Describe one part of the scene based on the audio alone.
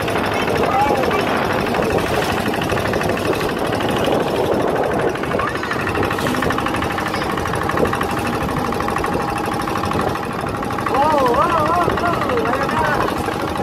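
Water splashes and rushes against the side of a moving boat.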